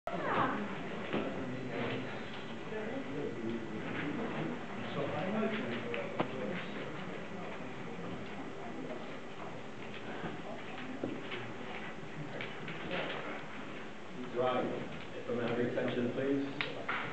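A man speaks calmly to an audience in a room with a slight echo.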